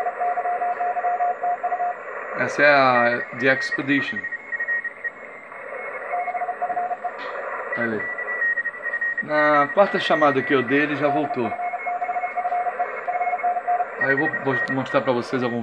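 Static hisses from a radio receiver.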